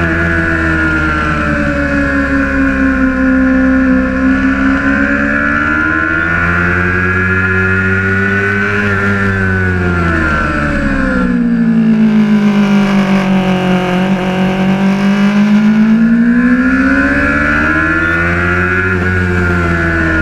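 A motorcycle engine roars loudly close by, its pitch rising and falling as it revs up and down.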